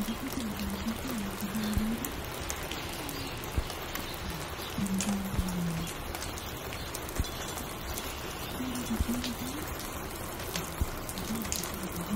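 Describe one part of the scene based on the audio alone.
A record plays slow, mellow music on a turntable.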